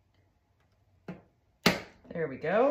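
Thin wooden pieces click together as they are slotted into place.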